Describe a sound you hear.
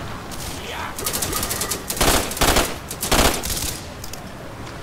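A gun fires a rapid series of shots.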